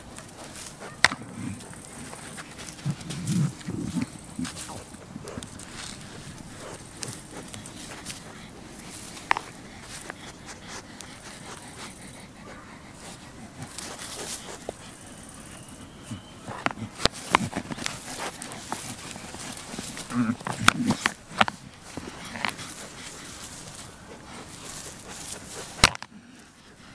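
Goat horns clack together as two goats butt heads.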